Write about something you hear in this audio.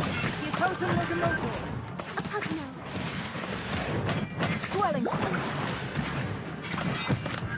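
Weapons clash and strike in a battle.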